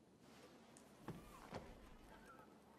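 A heavy book is set down on a wooden table with a soft thud.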